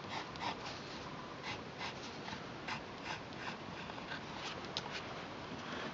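A pencil scratches and scrapes on paper in quick short strokes.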